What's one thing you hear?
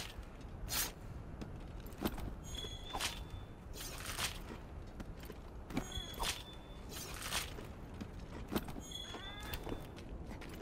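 A blade slices into flesh again and again with wet, sharp strikes.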